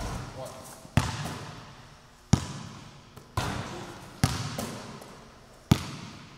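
A basketball bounces sharply on a wooden floor, echoing through a large hall.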